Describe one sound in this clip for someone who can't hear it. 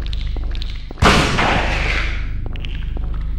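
A gunshot bangs and echoes.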